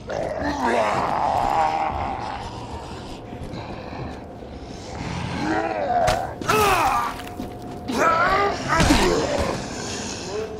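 A zombie growls and moans close by.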